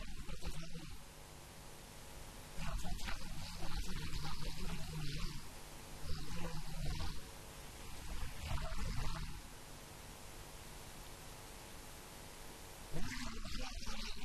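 An elderly man speaks into a microphone, heard through loudspeakers in an echoing hall, in bursts with pauses.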